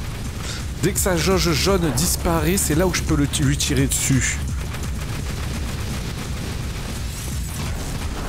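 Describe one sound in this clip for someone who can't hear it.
A large robot launches fireballs that whoosh and burst.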